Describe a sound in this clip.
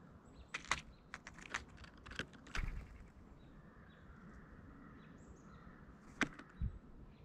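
Dry peanut shells rattle and click as a bird pecks among them.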